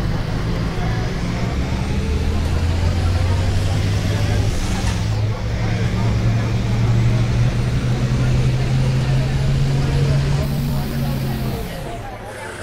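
A bus engine hums steadily and rises in pitch as the bus speeds up, then drops away.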